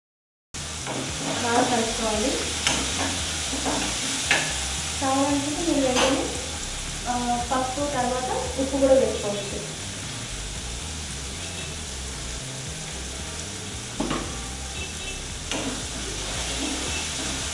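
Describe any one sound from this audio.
A spatula scrapes and taps against a metal pan.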